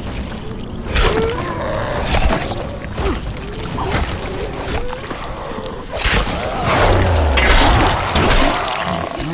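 A blade strikes flesh with heavy, wet thuds.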